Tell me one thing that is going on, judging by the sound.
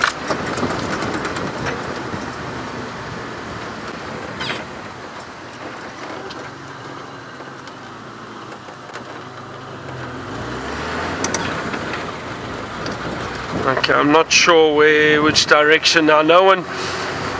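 An open vehicle's engine rumbles steadily while driving.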